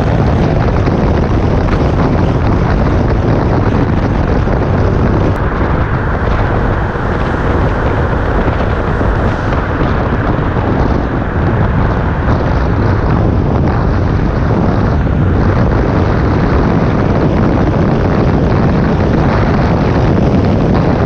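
Traffic rumbles and echoes through a tunnel.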